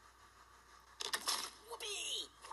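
A cartoon cannon fires with a short blast.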